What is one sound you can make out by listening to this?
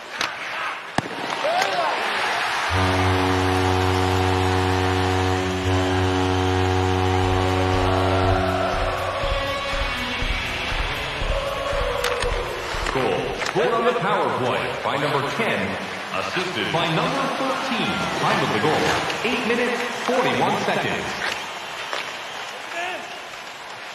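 Skates scrape and hiss on the ice.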